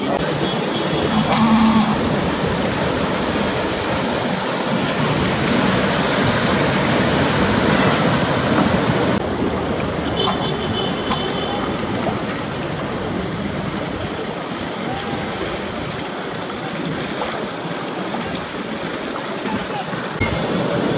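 Water splashes and churns around a vehicle's tyres as it drives through a river.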